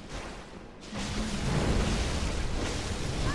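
Fire bursts with a loud roar.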